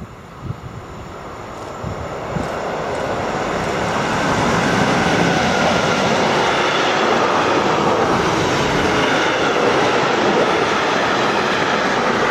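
A freight train approaches and rumbles past close by, growing loud.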